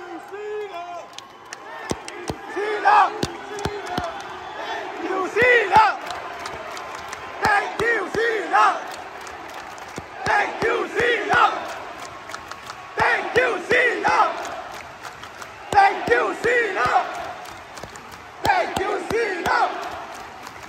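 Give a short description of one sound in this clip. A large crowd claps in time.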